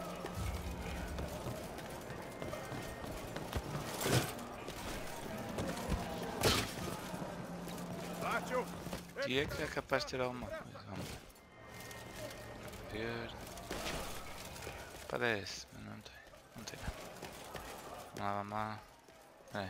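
Armoured footsteps thud and clank on wooden and stone floors.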